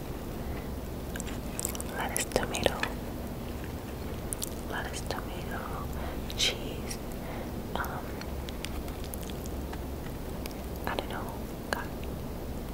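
Lettuce and a burger bun crinkle and squish up close.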